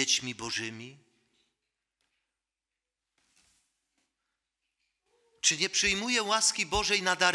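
A middle-aged man preaches into a microphone in a calm, earnest voice.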